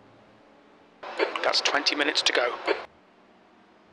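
A man speaks loudly and briefly into a microphone.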